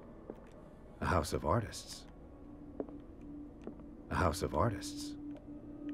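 A piano sounds a few loud chords.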